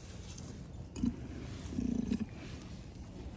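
A cow sniffs and snorts close by at the straw.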